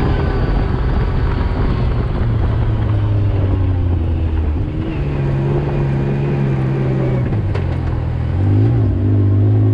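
A quad bike engine drones and revs as it drives over sand.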